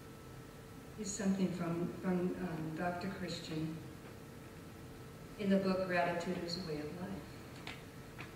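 A middle-aged woman speaks calmly into a microphone, in short phrases with pauses.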